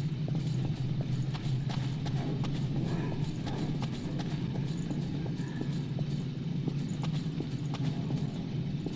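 Footsteps tap on hard stone at a run.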